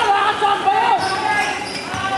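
A basketball bounces on the hardwood floor.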